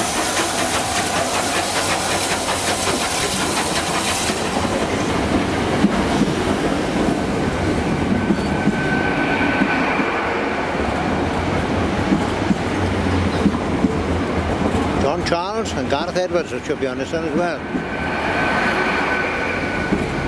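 A high-speed train rolls past close by with a loud, steady rumble.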